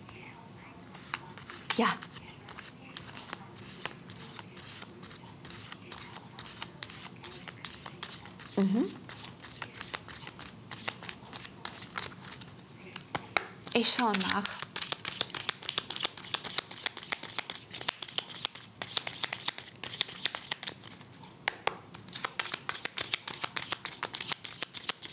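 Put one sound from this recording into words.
Cards riffle and snap as they are shuffled.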